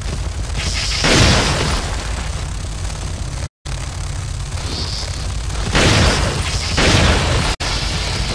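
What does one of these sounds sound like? A shotgun fires loud blasts several times.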